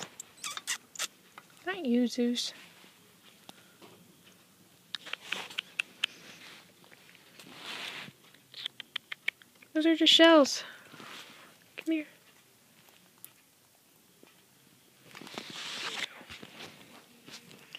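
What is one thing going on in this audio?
Fabric rustles as rodents shuffle through bedding.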